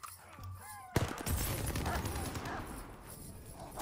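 An explosion booms close by and rumbles away.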